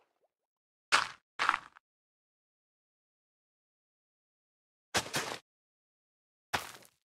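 Soft thuds of dirt being placed and tilled come in short bursts.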